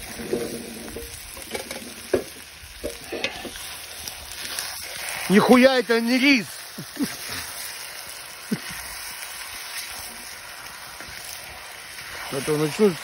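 A metal spoon scrapes and stirs food in a pan.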